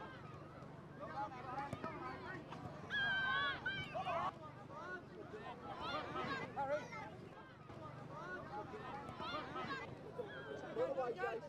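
Children and adults shout and cheer excitedly outdoors.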